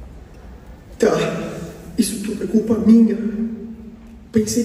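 A performer sings loudly through a microphone.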